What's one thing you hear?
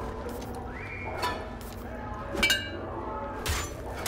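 A metal pipe clanks as it is twisted loose.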